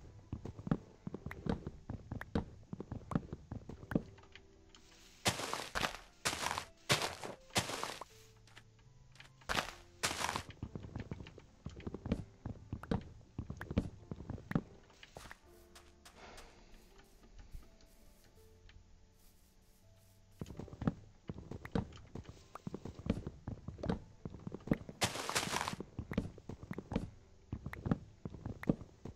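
Wood is chopped with quick, repeated thuds.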